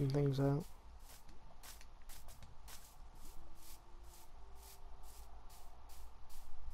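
Footsteps tread steadily on grass.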